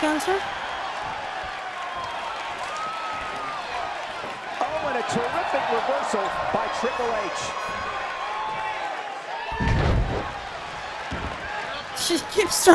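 A large crowd cheers and shouts throughout in a big echoing arena.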